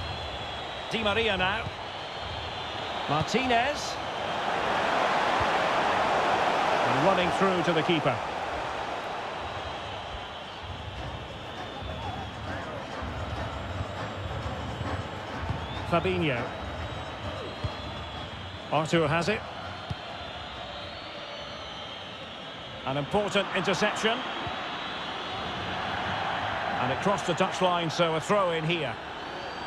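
A large stadium crowd roars and murmurs steadily, swelling at times.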